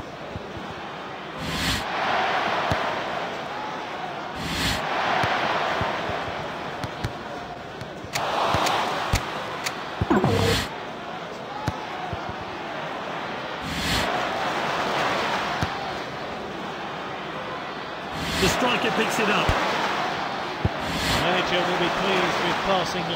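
A stadium crowd roars and cheers throughout, swelling in waves.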